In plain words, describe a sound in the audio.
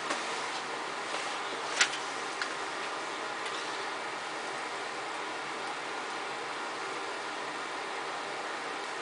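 A fan blows with a steady hiss.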